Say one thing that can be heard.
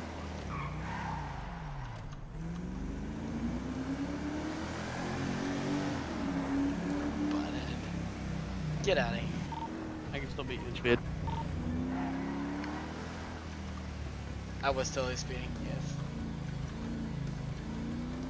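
A car engine revs and changes pitch as it speeds along.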